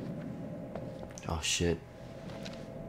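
A young man calls out questioningly.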